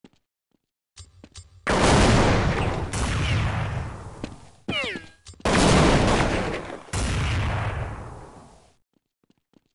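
A smoke grenade hisses loudly and slowly fades.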